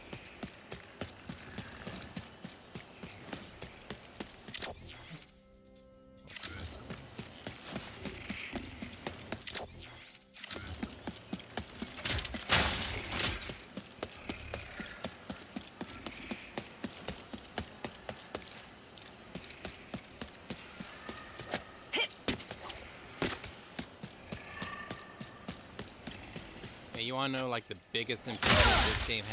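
Quick footsteps patter on soft ground.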